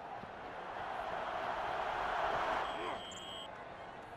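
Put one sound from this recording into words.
Padded players collide in a tackle.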